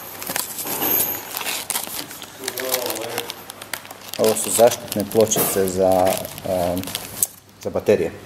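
Plastic wrapping crinkles as a hand handles it.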